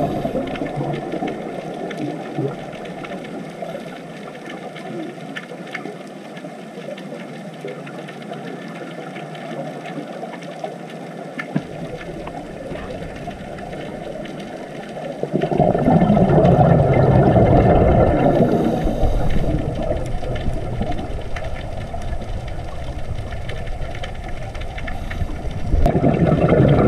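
Air bubbles from a scuba diver's breathing gurgle and rumble underwater.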